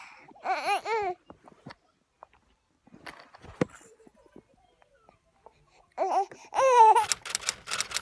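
A baby babbles and squeals up close.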